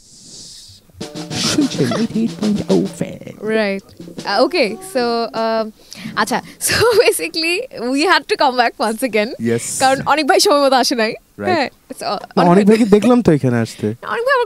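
A young woman talks with animation into a microphone over an online call.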